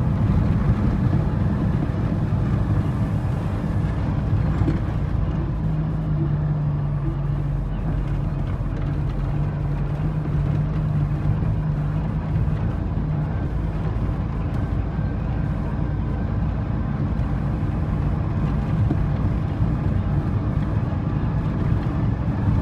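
A vehicle's engine rumbles loudly and steadily.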